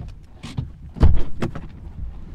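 A car door clunks open.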